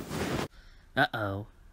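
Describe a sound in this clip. A woman cries out in dismay.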